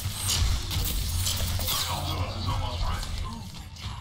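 Energy weapons fire in rapid, crackling bursts.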